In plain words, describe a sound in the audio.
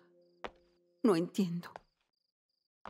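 A young woman speaks briefly and softly nearby.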